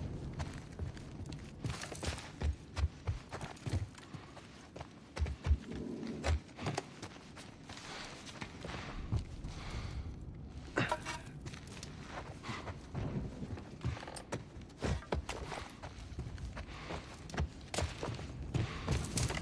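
Footsteps thud on wooden stairs and floors.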